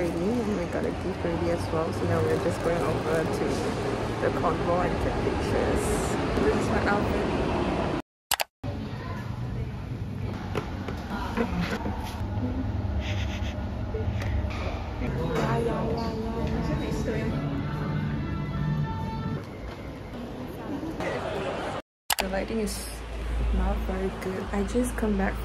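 A young woman talks casually, close to the microphone.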